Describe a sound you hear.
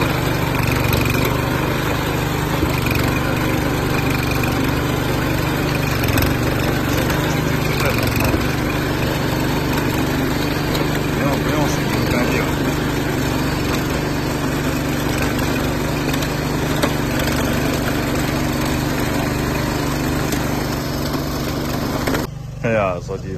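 A small engine runs loudly and steadily close by.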